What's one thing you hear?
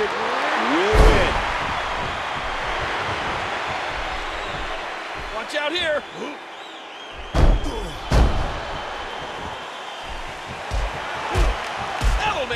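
Heavy thuds of bodies slam onto a wrestling ring mat.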